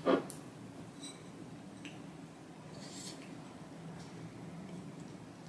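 A young woman chews noisily up close.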